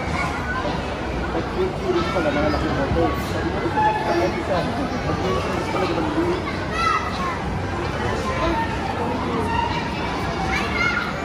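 Many people talk and chatter in a busy, echoing space.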